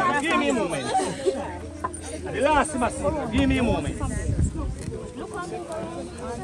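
A crowd of men and women talk and call out loudly close by, outdoors.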